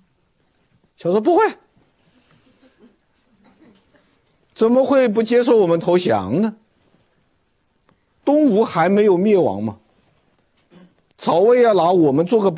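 A middle-aged man lectures with animation through a microphone, in short bursts with pauses.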